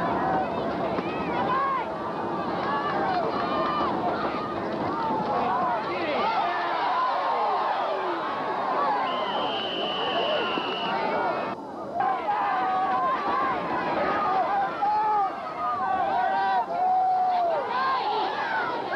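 A crowd of young men and boys shout and cheer close by outdoors.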